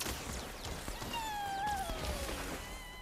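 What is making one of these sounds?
A laser gun fires with bright zapping sounds.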